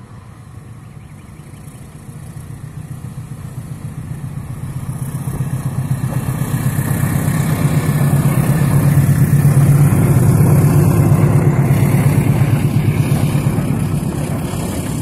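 A diesel locomotive approaches with a deep rumbling engine that grows louder.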